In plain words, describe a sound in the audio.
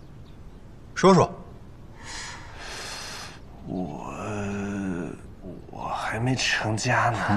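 A young man speaks softly and hesitantly.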